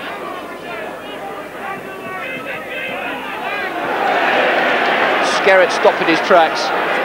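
A large crowd cheers and roars in an open stadium, swelling louder.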